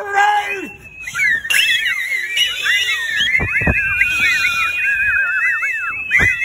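A man whistles loudly through his fingers.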